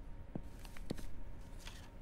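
Paper rustles and crinkles under a hand.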